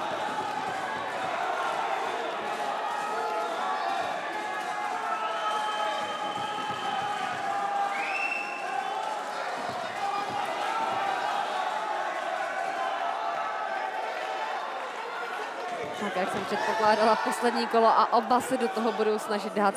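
A large crowd murmurs and cheers in an echoing hall.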